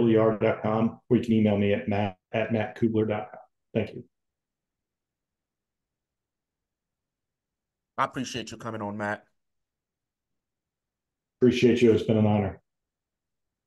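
A middle-aged man speaks calmly into a microphone over an online call.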